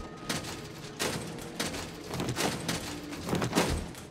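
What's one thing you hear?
A metal drawer scrapes open.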